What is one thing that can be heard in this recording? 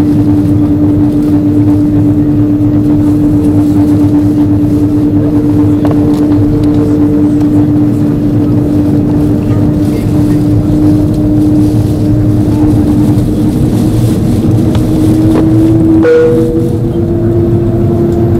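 Aircraft wheels rumble over the taxiway.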